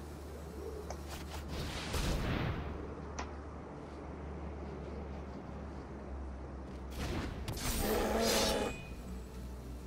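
Digital card game effects whoosh and chime as cards are played.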